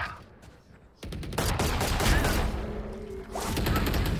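Rapid gunshots fire in a video game.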